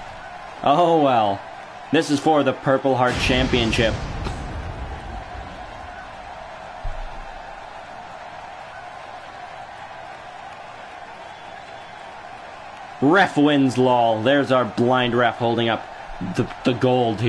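A large crowd cheers in an echoing arena.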